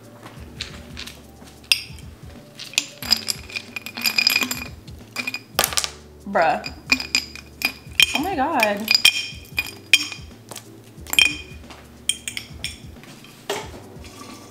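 Ice cubes clink and rattle into a plastic cup.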